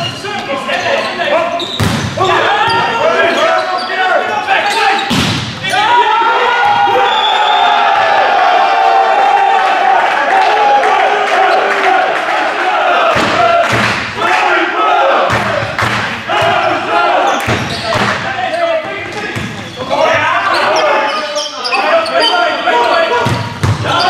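Players shout and call out to each other.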